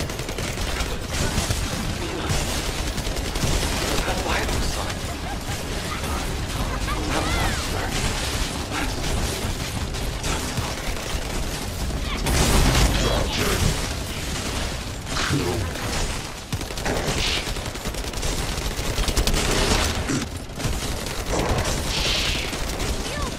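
Energy weapons fire and crackle in a game battle.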